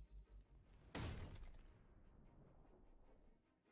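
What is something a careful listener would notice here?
Glass shatters and scatters across the floor.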